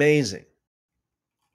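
A man speaks briefly and close into a microphone, then falls silent.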